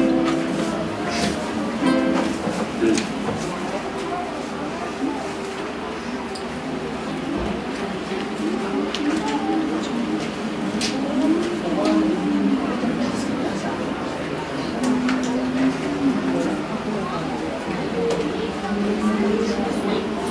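A group of young people sing together in a small echoing room.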